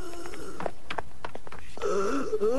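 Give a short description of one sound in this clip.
Footsteps thud quickly up wooden stairs.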